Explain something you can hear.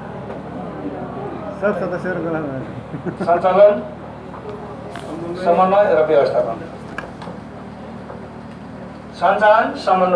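A man speaks calmly nearby, explaining in bursts.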